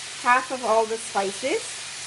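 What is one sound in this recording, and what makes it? Liquid pours into a hot pan and sizzles.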